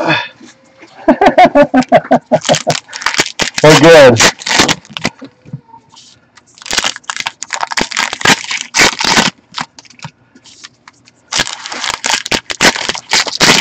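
Foil card wrappers crinkle and tear as hands open them.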